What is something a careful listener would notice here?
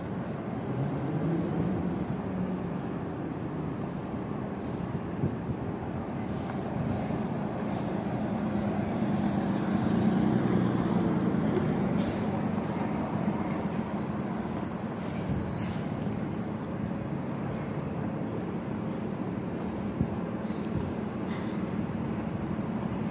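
City traffic rumbles along a nearby street.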